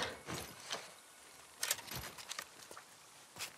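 Objects clatter and rustle as a person rummages through a pile.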